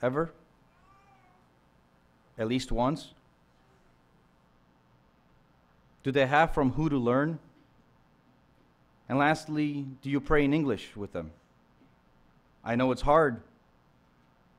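A young man speaks calmly into a microphone, with pauses between phrases.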